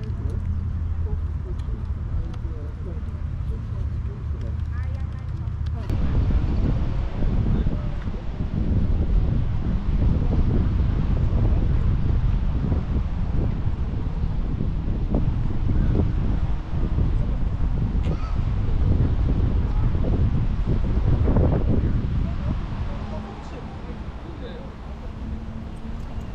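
Wind rumbles loudly outdoors.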